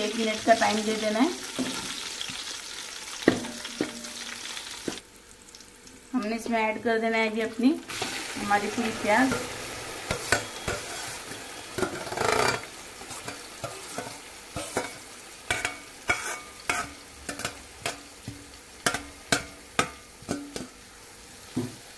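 A metal spatula scrapes and clicks against a pan.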